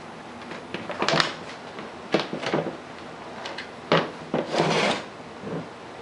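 Stiff material crinkles and scrapes under hands.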